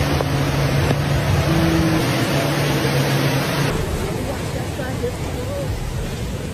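Floodwater rushes and roars loudly.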